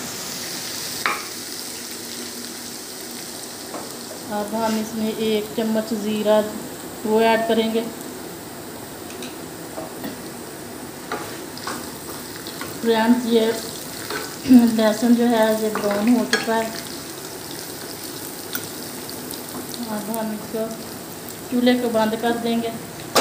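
A metal spoon scrapes and taps against a frying pan.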